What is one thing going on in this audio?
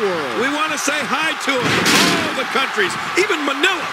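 A body slams onto a wrestling mat with a thud.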